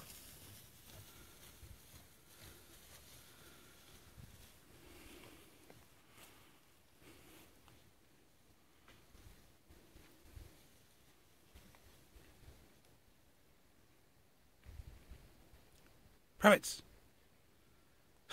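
Dogs rustle through tall dry crops.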